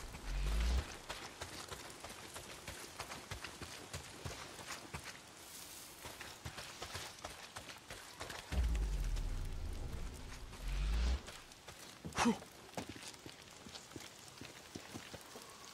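Footsteps crunch quickly through grass and leaves.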